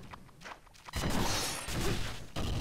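A sword slashes and magic bursts with a crackling blast.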